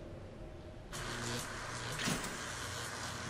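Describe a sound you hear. Electricity crackles and buzzes in sharp bursts.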